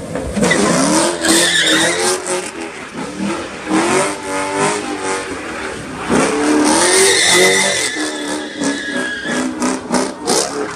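Tyres screech as a car spins on pavement.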